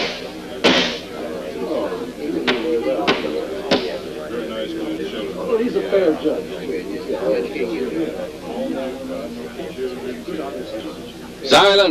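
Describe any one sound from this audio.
A crowd murmurs and chatters in a room.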